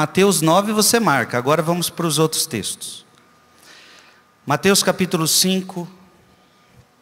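A man speaks through a microphone, his voice echoing in a large hall.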